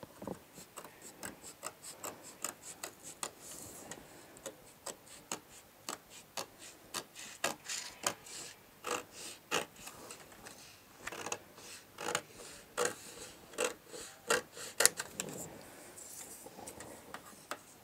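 Scissors snip through paper in quick, repeated cuts.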